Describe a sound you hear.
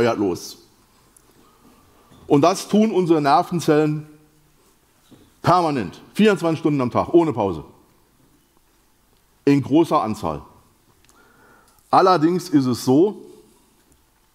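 A middle-aged man speaks in bursts with pauses through a microphone, in a large echoing hall.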